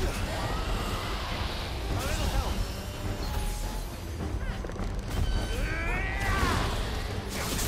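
A huge creature roars and shrieks in bending cries.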